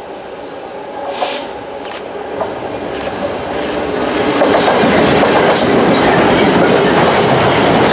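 A diesel locomotive roars closer and passes by loudly.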